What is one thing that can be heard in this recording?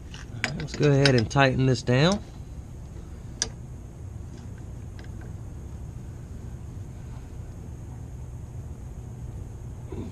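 A wrench taps and clicks against metal parts.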